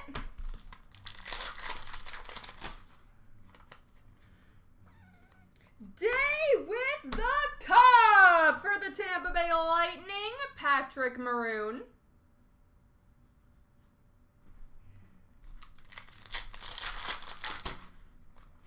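A plastic wrapper crinkles and tears as it is pulled open.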